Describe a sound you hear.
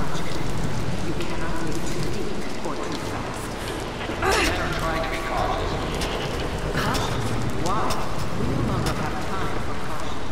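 Footsteps splash on wet stone.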